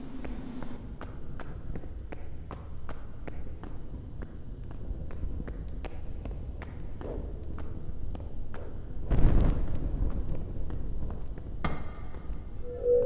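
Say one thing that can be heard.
Footsteps tread steadily.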